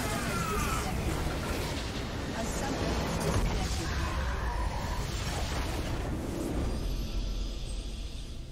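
A loud explosion rumbles and crackles, then fades.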